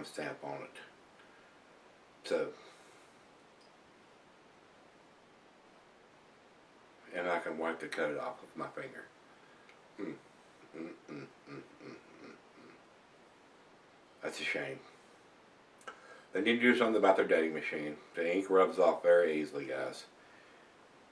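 An elderly man speaks calmly and close by, in short bursts with pauses.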